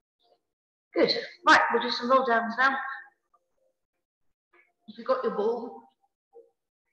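A woman speaks calmly and close, through a microphone.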